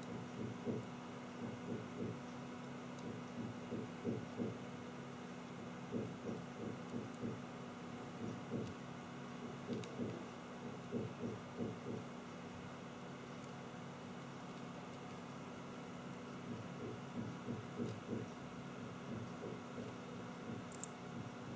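A soldering iron sizzles faintly as solder melts.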